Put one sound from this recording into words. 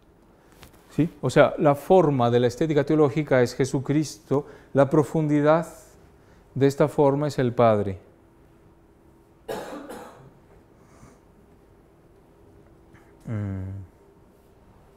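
A man speaks calmly and clearly in a quiet room.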